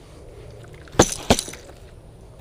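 A fishing reel clicks.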